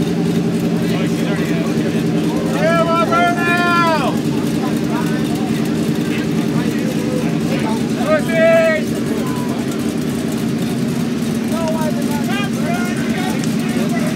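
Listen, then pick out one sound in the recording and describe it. Car engines idle with a deep, steady rumble close by.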